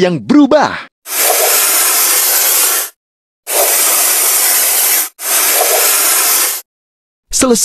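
A spray gun hisses in short bursts.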